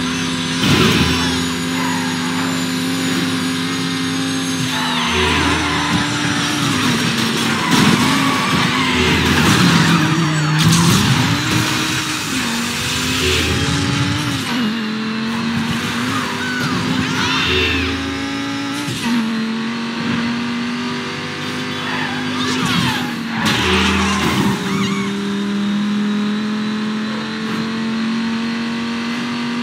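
A V12 supercar engine roars at full throttle.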